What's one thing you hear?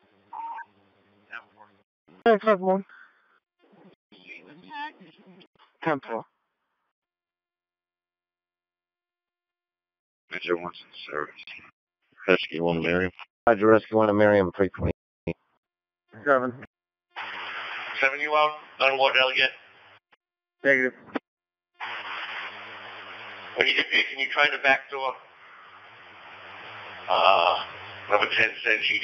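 Voices come through a radio scanner's speaker in short bursts.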